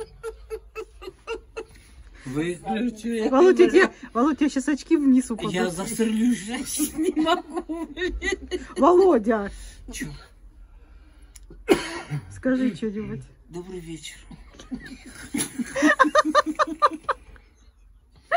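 An elderly man laughs heartily close by.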